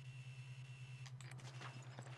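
Electronic static crackles and buzzes briefly.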